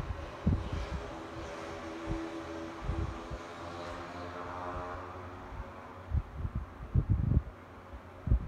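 An electric fan hums and whirs steadily close by.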